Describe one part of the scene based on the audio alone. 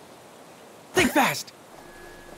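A snowball thuds onto the snow.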